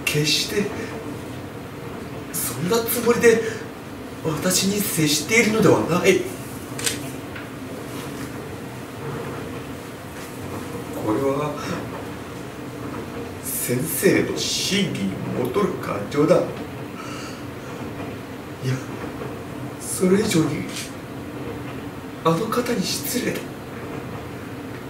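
A middle-aged woman reads aloud with expression.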